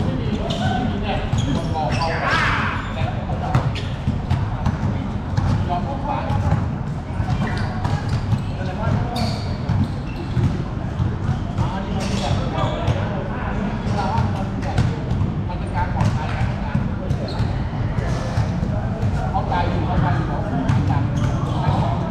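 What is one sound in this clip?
A basketball bounces on a hard court, echoing in a large open hall.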